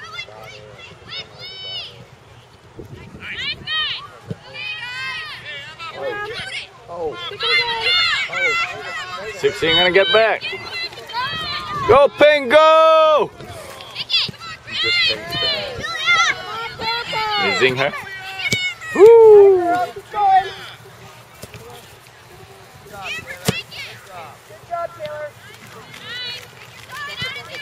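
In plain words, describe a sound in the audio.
Girls and adults shout and cheer nearby outdoors.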